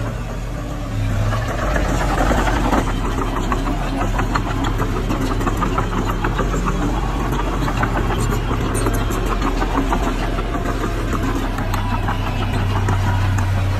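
Earth and clods scrape and tumble as a bulldozer pushes dirt.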